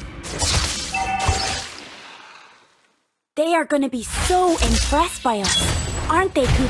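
Video game effects whoosh and clash in bursts.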